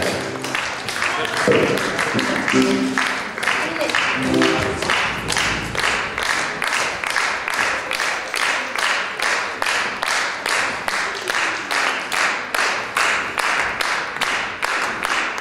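Hands clap in a steady rhythm.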